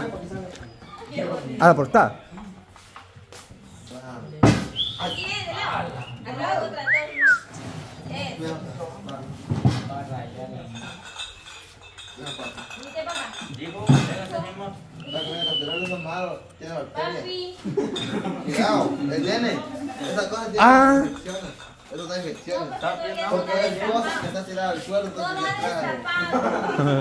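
Several adults talk and laugh together nearby.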